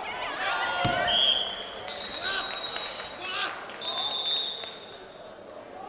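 A referee blows a whistle in short sharp blasts.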